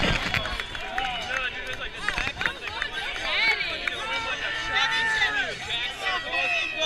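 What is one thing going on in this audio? A crowd of men and women talk and call out excitedly nearby outdoors.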